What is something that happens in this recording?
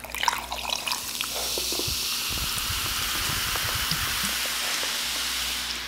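A drink fizzes in a cup.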